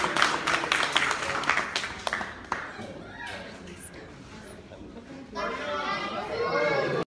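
A crowd of young adults chatters and cheers nearby in a room.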